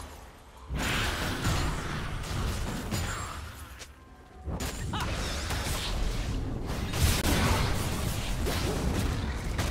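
Magical spell effects whoosh and clash in a fast, busy fight.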